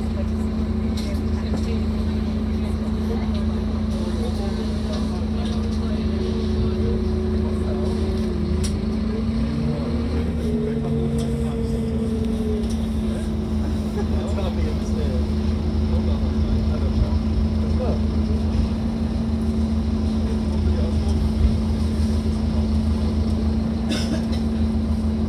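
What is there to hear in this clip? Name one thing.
A bus engine hums steadily inside the cabin.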